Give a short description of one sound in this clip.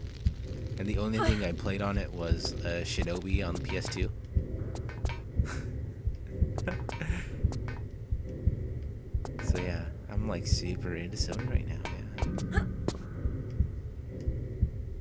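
Footsteps thud steadily on a hard stone floor.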